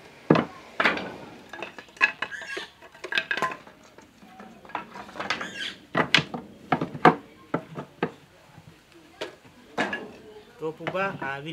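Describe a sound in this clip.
Wooden slats clatter and knock as they are laid on a wooden box.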